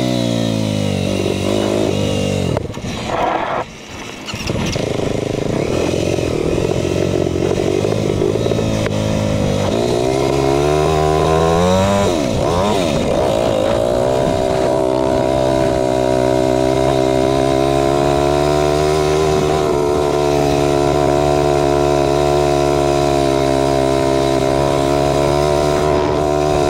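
A dirt bike engine roars close by, revving up and down as it shifts gears.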